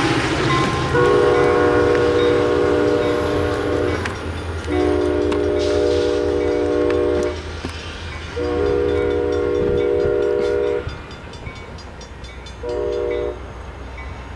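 A diesel train horn blasts loudly in several long blows.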